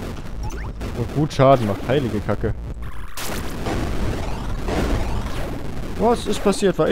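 Video game blasts and zaps fire rapidly in a busy battle.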